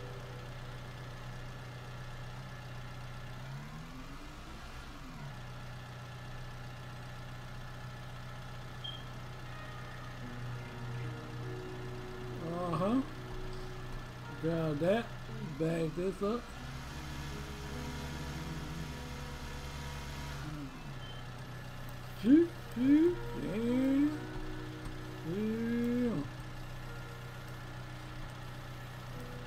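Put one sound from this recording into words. A small tracked loader's diesel engine hums steadily.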